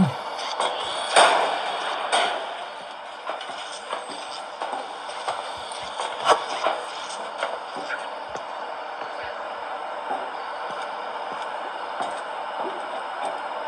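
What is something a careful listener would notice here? Fingers tap on a glass touchscreen.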